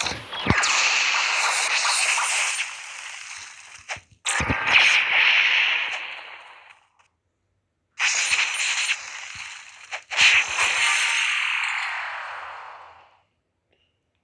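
Loud magical energy blasts whoosh and crackle.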